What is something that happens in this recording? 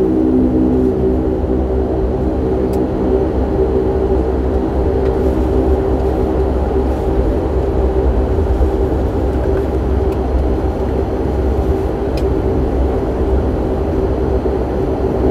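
A jet engine hums and drones steadily, heard from inside a taxiing aircraft.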